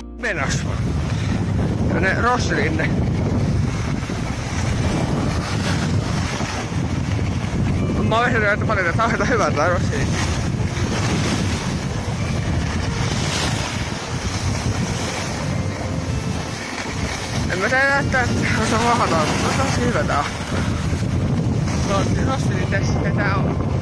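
Skis scrape and hiss steadily over packed snow.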